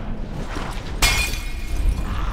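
A bottle bursts into roaring flames.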